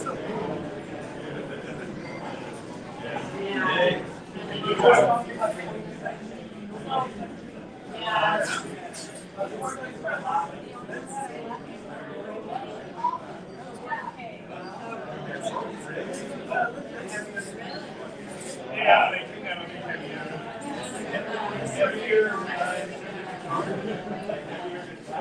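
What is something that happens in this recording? Several adults talk and chatter nearby in a room.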